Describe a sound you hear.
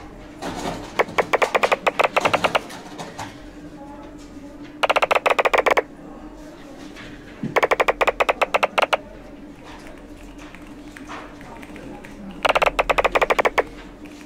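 Quick bursts of clicking game sounds play as sheets of paper stack up.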